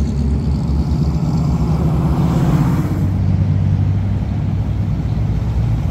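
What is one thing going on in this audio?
A V8 muscle car rumbles past.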